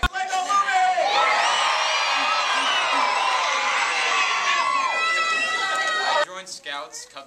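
A large audience cheers and shouts loudly in an echoing hall.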